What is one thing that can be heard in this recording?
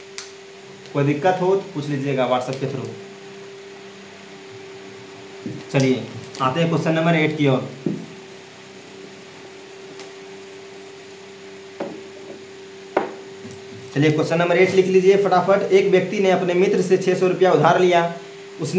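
A young man speaks clearly and with animation, close to a microphone.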